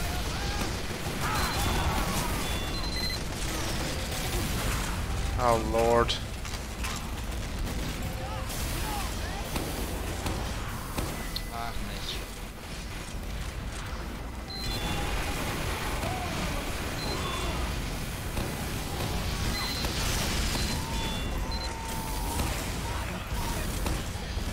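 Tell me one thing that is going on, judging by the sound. Shotgun blasts and gunfire ring out in a video game.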